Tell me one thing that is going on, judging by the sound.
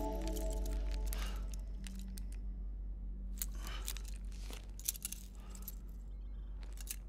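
A handcuff chain rattles as a man stretches his arms.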